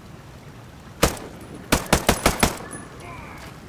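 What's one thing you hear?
A rifle fires a quick burst of loud shots.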